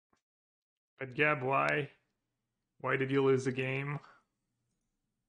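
A young man speaks briefly with animation into a close microphone.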